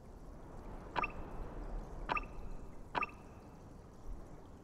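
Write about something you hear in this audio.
A game menu makes short chiming clicks as items are picked.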